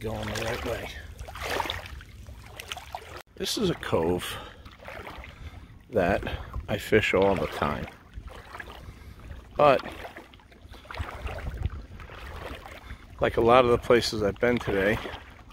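Wind blows outdoors across open water.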